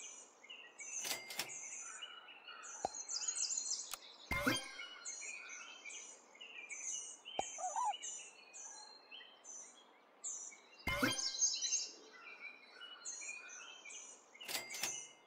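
Short game sound effects chime and pop from time to time.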